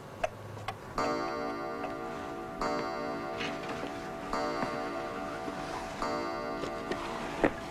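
A clock chimes a ringing melody.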